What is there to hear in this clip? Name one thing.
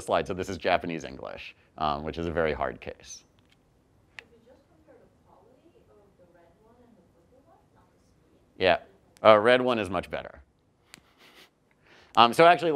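A man speaks calmly to an audience through a microphone, in pauses.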